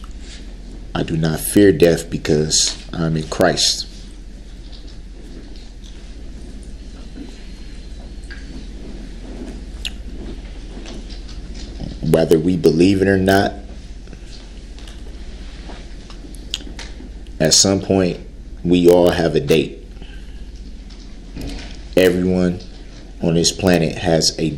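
A man speaks in short bursts with long pauses.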